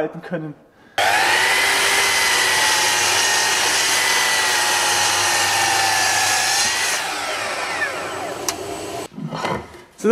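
A mitre saw whines loudly as it cuts through wood, then spins down.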